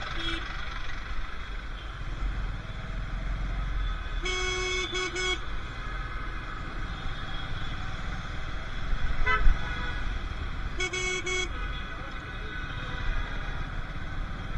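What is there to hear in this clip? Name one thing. Traffic rumbles all around outdoors.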